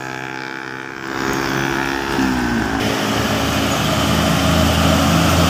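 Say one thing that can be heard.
Another truck engine rumbles by at a moderate distance.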